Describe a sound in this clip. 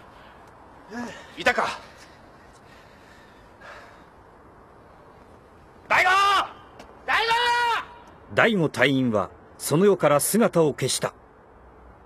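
A man speaks with worry, heard close by.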